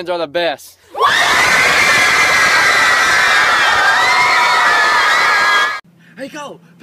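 A large crowd of girls screams loudly.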